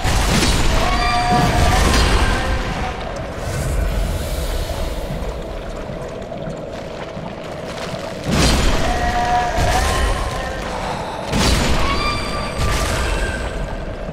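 A giant creature shrieks in pain.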